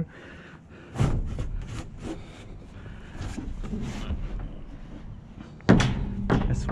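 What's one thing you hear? A metal dumpster lid creaks and scrapes as it is lifted.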